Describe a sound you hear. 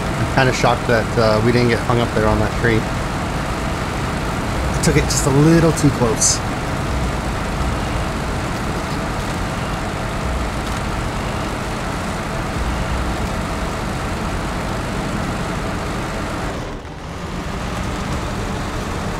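A truck engine rumbles steadily as the truck drives slowly.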